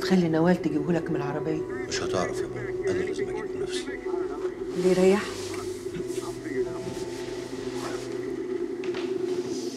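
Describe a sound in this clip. A television plays a film soundtrack with voices and music.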